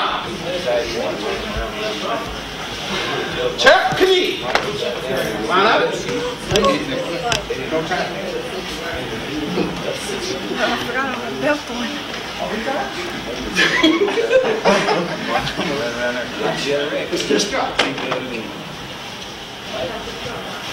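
Children and adults chatter and call out in an echoing hall.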